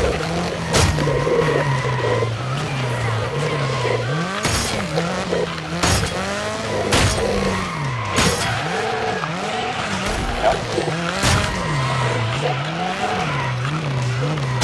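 A racing car engine revs up and down.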